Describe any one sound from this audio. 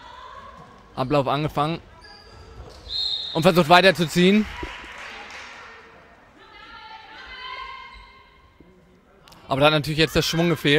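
Young women shout to each other in an echoing sports hall.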